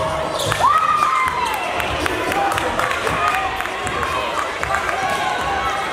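A basketball bounces on a hard floor as a player dribbles.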